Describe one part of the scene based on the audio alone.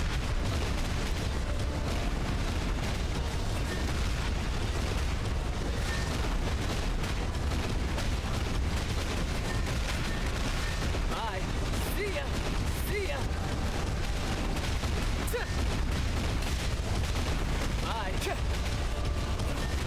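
Explosions boom repeatedly.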